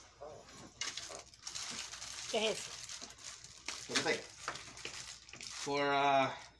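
Plastic packaging crinkles and rustles as it is torn open.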